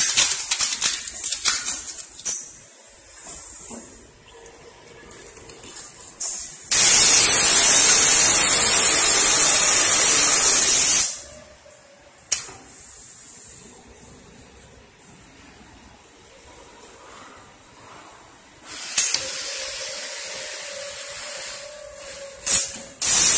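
A machine whirs and clunks as its parts move.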